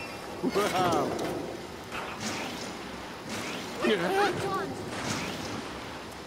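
Water splashes under a kart.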